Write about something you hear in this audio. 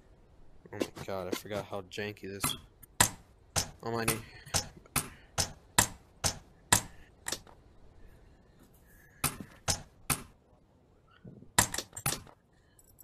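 Sharp knocks land in quick succession.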